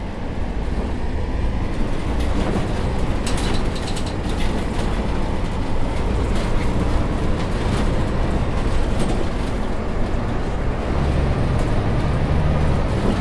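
A diesel city bus engine drones while cruising.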